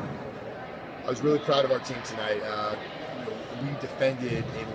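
A man speaks calmly and clearly into a nearby microphone in a large echoing hall.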